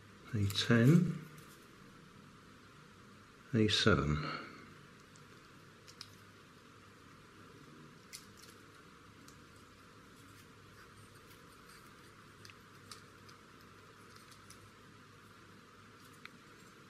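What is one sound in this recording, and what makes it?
Small plastic pieces click and snap together.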